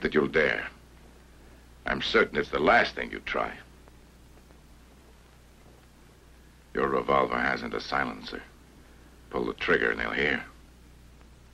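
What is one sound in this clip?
A young man talks in short, animated bursts nearby.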